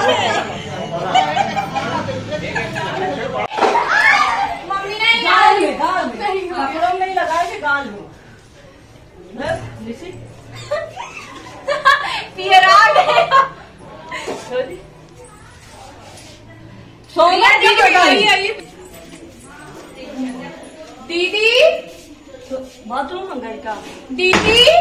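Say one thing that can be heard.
Women talk and laugh with animation close by.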